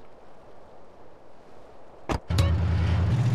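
A vehicle door opens and slams shut.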